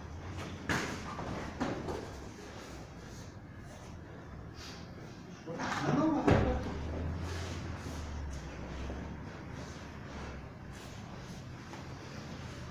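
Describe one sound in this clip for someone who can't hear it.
Bodies shuffle and thud on a padded mat.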